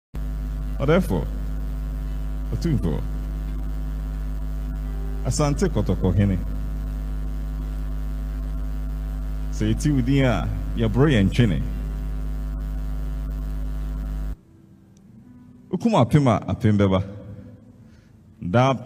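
A man recites dramatically into a microphone over loudspeakers, in short bursts with pauses.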